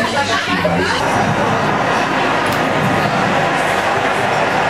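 A crowd murmurs and chatters in a room.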